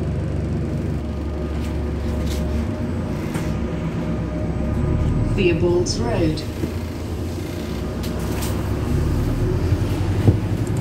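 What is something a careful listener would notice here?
A diesel city bus pulls away and drives along a street, heard from inside.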